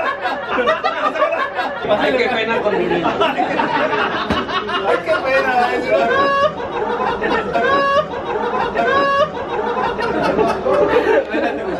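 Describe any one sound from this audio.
Several men laugh loudly together.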